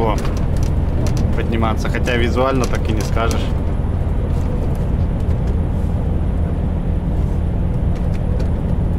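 Tyres roar on the highway.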